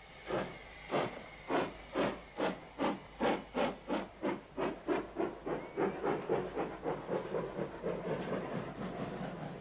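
A subway train rumbles past.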